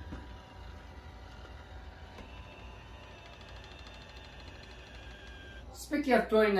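A robot vacuum hums softly as it rolls across the floor.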